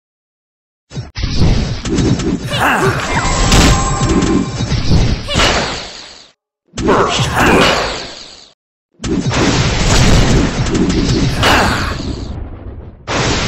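Swords clash and clang in a noisy battle.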